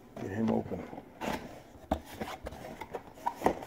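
A large cardboard box rustles and scrapes as a man handles it.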